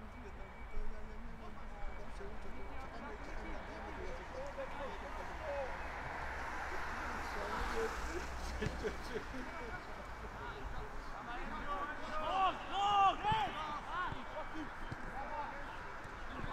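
A crowd of spectators murmurs in the distance.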